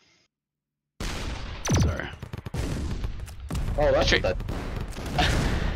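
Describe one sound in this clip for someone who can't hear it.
Video game weapons fire and explode in rapid bursts.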